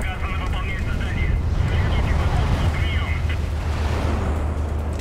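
A big explosion booms and roars.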